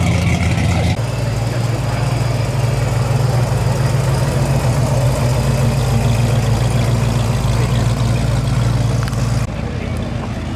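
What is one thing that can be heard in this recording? A car's engine idles with a deep, loud rumble as the car rolls slowly past.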